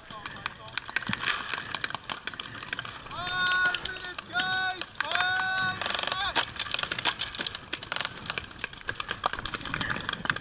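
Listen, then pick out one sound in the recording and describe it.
Paintball guns fire in quick bursts of sharp pops.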